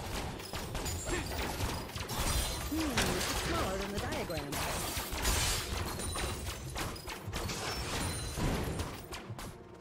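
Game spell effects and combat sounds crackle and burst.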